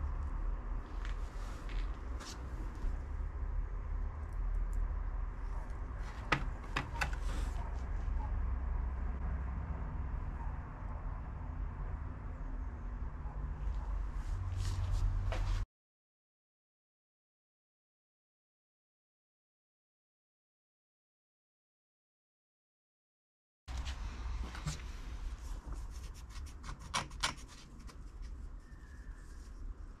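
A small ceramic pot clicks and scrapes as hands turn it.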